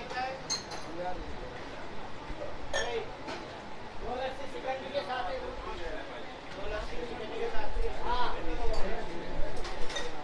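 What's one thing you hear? Milk pours and splashes between metal tumblers.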